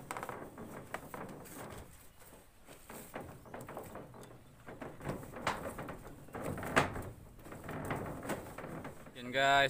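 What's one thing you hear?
A paintbrush scrapes and swishes across a corrugated metal roof.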